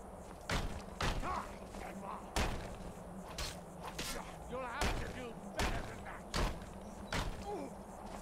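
Blades clash and thud in a fight.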